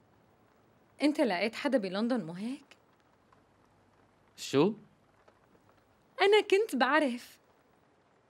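A young woman speaks softly and warmly, close by.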